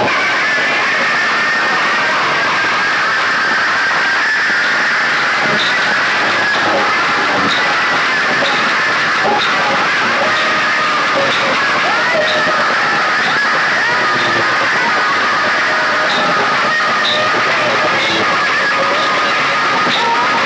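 A crowd shouts and cheers close by.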